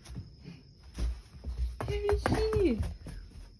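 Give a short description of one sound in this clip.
A dog's paws patter on a floor mat.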